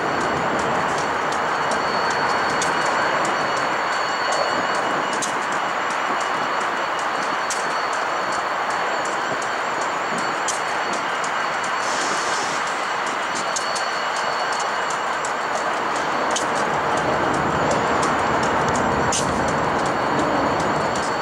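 Railcar wheels squeal and clank on the rails.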